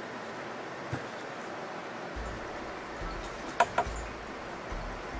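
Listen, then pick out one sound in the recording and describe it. Small objects clink and tap as hands arrange them on a table.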